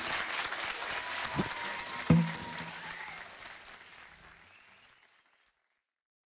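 Electric guitars play together and slowly fade out.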